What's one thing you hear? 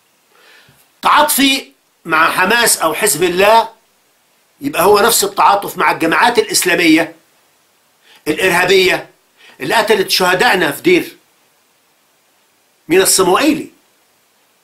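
A middle-aged man speaks loudly and with animation into a close microphone, in short bursts with pauses.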